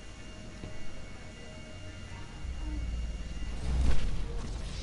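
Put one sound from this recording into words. A helicopter's rotor whirs overhead.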